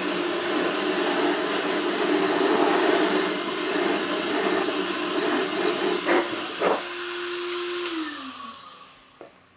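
Compressed air hisses loudly from a nozzle, then fades out.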